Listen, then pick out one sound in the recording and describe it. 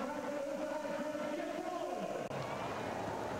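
A large stadium crowd sings and chants loudly.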